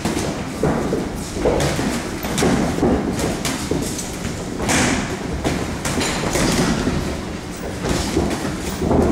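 Boxing gloves thump against pads in quick bursts, echoing through a large room.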